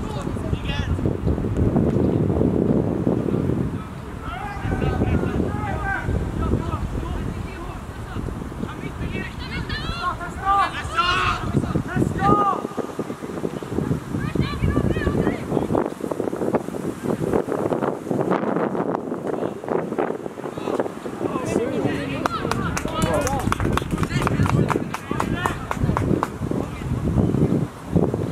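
Players shout to each other in the distance across an open outdoor field.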